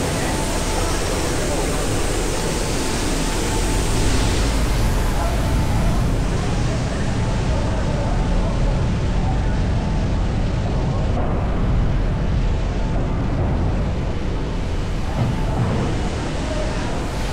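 A fire roars and crackles nearby, echoing in a large hall.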